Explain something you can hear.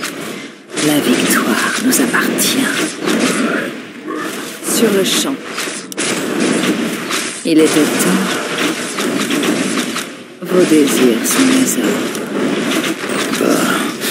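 Magic spells burst and crackle.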